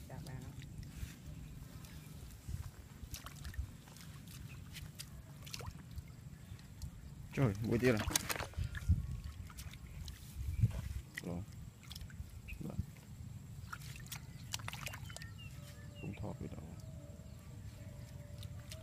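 Hands splash and slosh in shallow muddy water.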